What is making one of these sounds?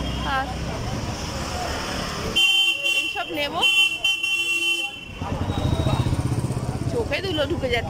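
A woman talks close up.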